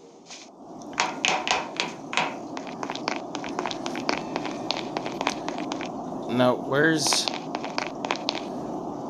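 Quick light footsteps patter along.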